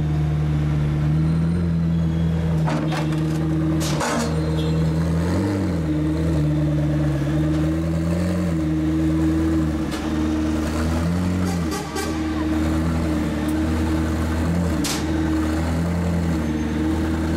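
The twin-turbo V8 of a race car idles with a deep, uneven burble.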